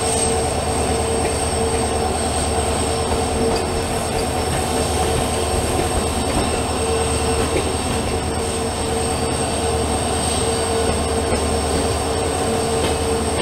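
A diesel locomotive engine drones close by.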